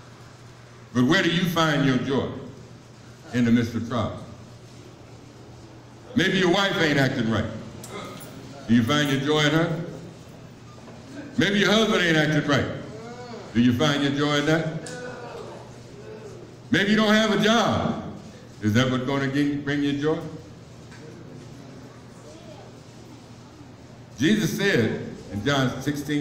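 A man speaks in bursts through a microphone over loudspeakers in a large echoing room.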